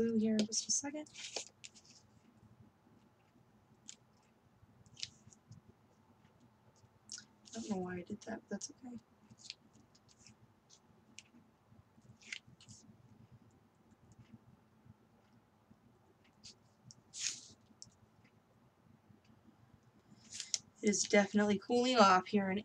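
Paper rustles and crinkles as hands fold and handle it.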